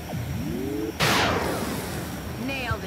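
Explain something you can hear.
A laser rifle fires with a sharp, hissing blast.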